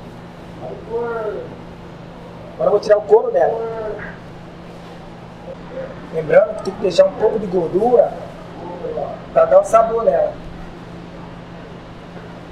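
A knife slices through raw meat.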